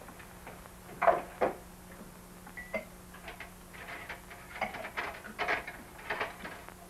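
Dishes clink and rattle as they are handled.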